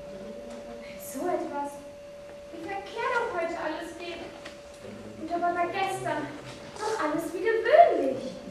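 A young woman sings into a microphone, heard through loudspeakers in a hall.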